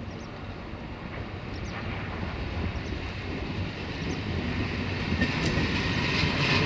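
A train approaches, its rumble growing louder.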